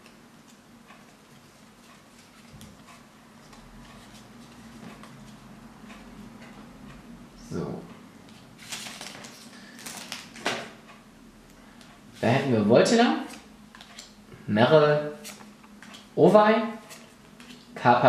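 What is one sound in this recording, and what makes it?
Playing cards rustle and slap softly as they are shuffled and flipped.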